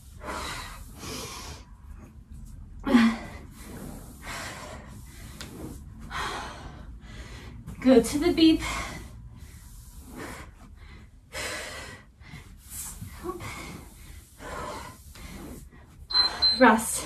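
A woman breathes hard in quick puffs.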